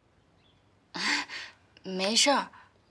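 A young woman answers softly, close by.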